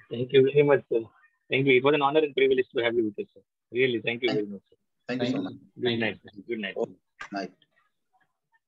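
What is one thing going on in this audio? A middle-aged man speaks calmly over an online call.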